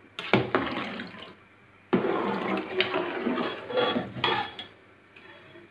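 A thick liquid sloshes in a pot.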